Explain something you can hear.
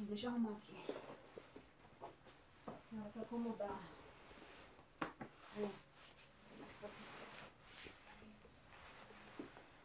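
Bedding rustles as a woman sits down on a bed.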